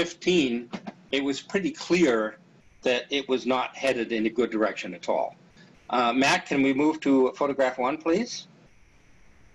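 An older man speaks calmly through an online call.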